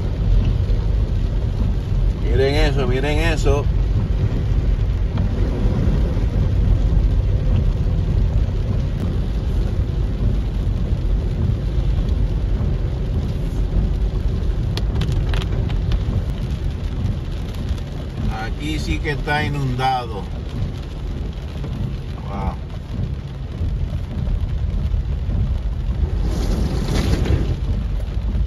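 Rain patters on a car windshield.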